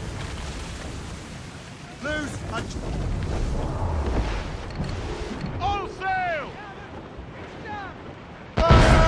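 Ocean waves rush and splash against a sailing ship's hull.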